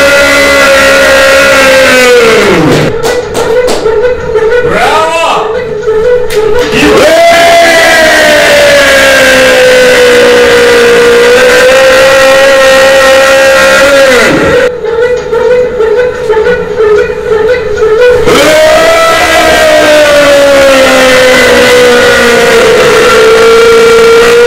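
A harmonica plays loudly through a microphone, holding long notes that swoop down and up in pitch.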